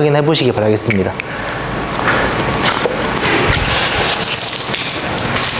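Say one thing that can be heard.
Water sprays in short hissing bursts.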